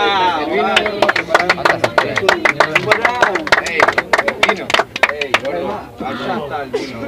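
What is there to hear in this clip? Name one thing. A crowd of young men shout and cheer loudly nearby.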